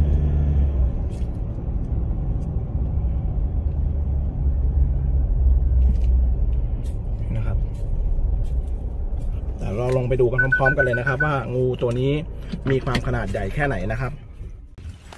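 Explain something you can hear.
A car engine rumbles low and steady while driving, then goes quiet.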